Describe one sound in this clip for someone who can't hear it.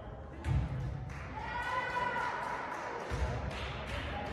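A volleyball is struck with a thump.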